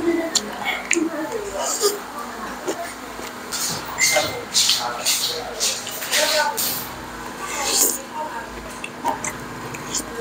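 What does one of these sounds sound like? A young man slurps noodles loudly, close up.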